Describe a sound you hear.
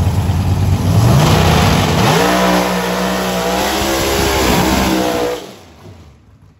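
A car engine revs up sharply as the car speeds away.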